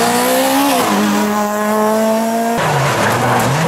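A racing car engine roars close by, revving high and dropping as it shifts gears.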